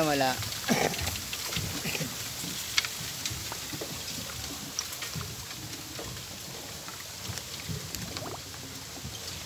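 Leafy water plants rustle and snap as hands pull at them.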